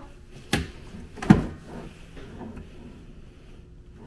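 A wooden drawer slides open with a knock.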